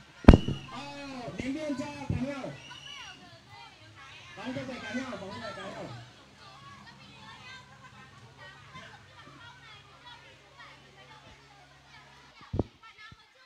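Water splashes as children move and play in a pool.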